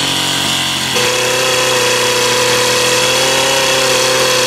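A chainsaw engine idles steadily.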